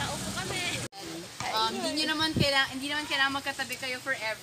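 A young woman speaks to a group outdoors.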